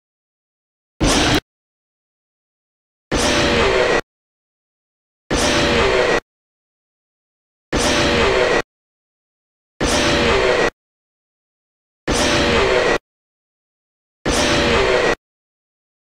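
An animatronic monster lets out a harsh, distorted screech in short bursts.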